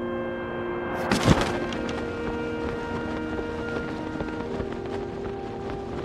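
Wind rushes past during a glide through the air.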